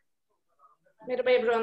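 A woman speaks loudly and clearly over an online call.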